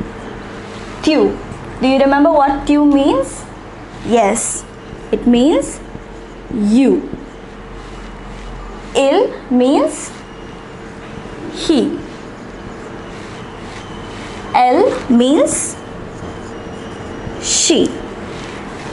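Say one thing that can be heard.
A young woman speaks calmly and clearly, close to a microphone, pausing between words.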